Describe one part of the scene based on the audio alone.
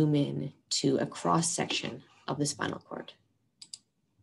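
A young woman speaks calmly and closely into a microphone, as if teaching.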